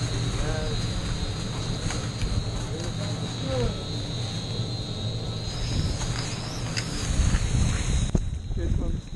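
Wind rushes past a microphone outdoors.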